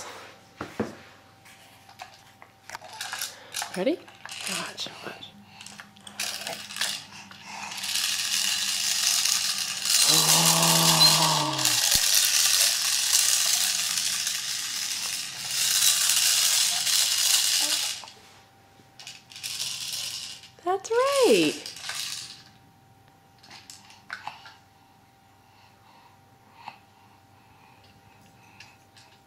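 A plastic toy rattles and clicks in a baby's hands.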